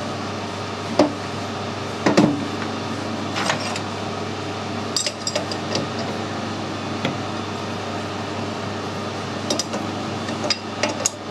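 Metal parts clink and knock as a chuck is handled.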